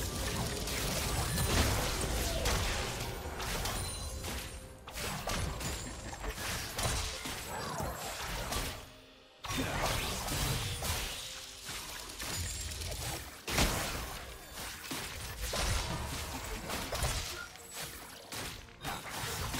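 Game spell effects whoosh and crack during a fight.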